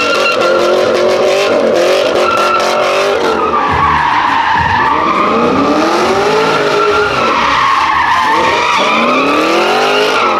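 A car engine revs hard, rising and falling in pitch throughout.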